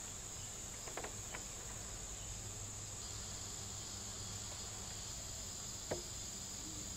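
Metal tweezers tap lightly against plastic.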